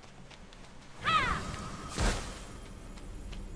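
A shimmering magical whoosh rings out and fades.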